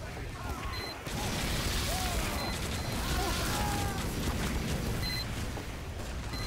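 A flamethrower roars in bursts.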